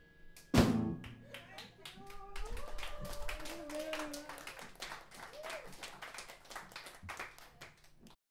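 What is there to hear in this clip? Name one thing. Drums are tapped lightly.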